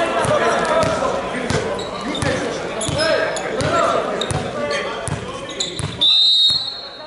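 A volleyball bounces repeatedly on a hard floor in a large echoing hall.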